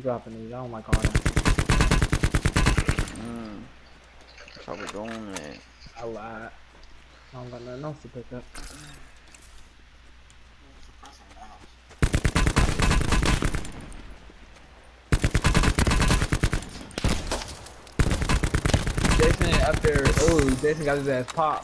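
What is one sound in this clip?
An automatic gun fires in rapid, loud bursts.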